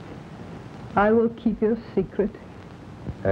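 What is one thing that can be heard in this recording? A young woman speaks softly and sadly.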